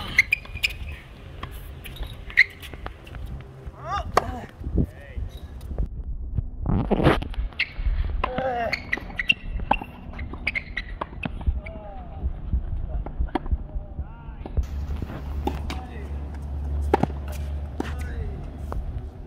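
A tennis racket hits a ball with sharp pops.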